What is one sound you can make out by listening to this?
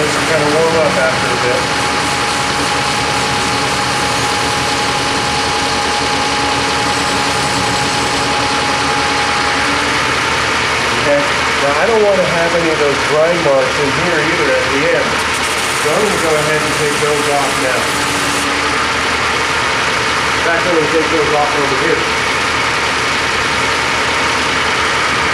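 Motor-driven grinding wheels whir as they spin.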